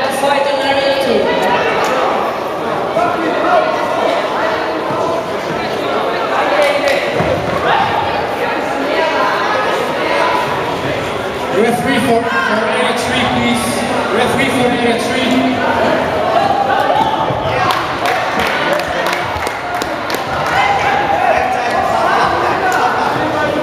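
A crowd talks and cheers loudly in an echoing hall.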